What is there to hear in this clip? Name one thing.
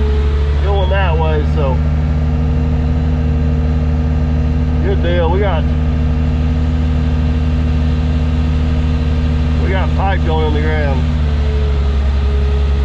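A heavy engine drones steadily close by.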